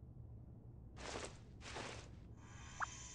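A brief rushing whoosh sounds twice.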